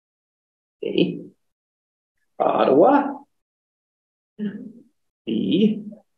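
A man speaks calmly in short phrases close to a microphone.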